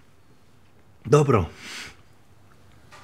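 A young man speaks briefly and casually nearby.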